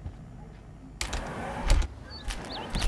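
A sliding glass door rolls open.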